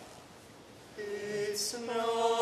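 A choir of young men sings together in a large echoing hall.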